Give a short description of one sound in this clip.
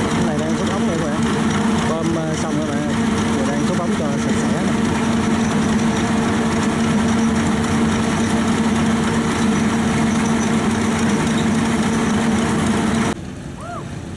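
An engine drones steadily nearby.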